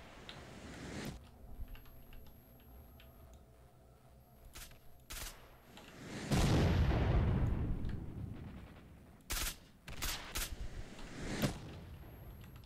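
A scoped rifle fires sharp, loud shots.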